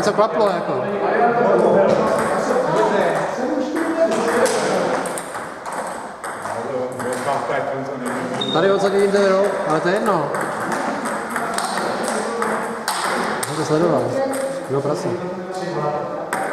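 Ping-pong balls click back and forth on tables and paddles.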